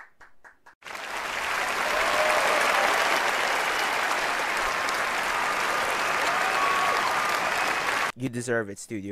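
A large crowd applauds loudly in a big hall.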